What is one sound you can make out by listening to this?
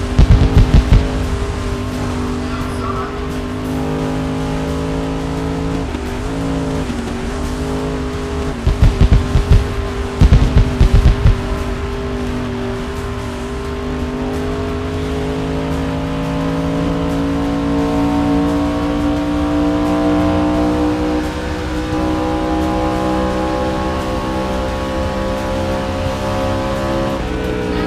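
A race car engine roars steadily, its pitch climbing as it speeds up.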